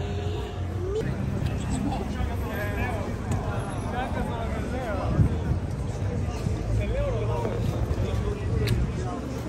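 A crowd of men and women chatters in a busy street outdoors.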